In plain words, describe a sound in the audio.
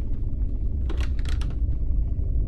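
A wooden door creaks open.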